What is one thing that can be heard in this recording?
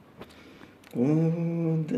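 A man sings a loud, drawn-out note close to the microphone.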